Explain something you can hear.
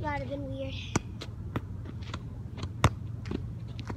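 A ball thuds against the ground.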